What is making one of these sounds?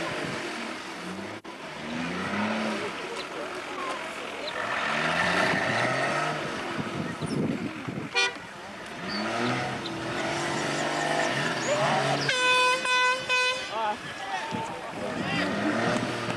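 A crowd of onlookers chatters outdoors.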